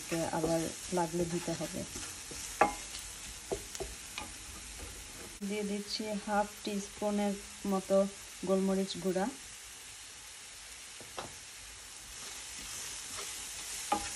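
A wooden spatula scrapes and stirs in a pan.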